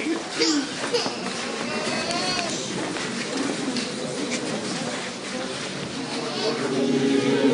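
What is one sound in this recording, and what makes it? People murmur and talk quietly in a crowded room.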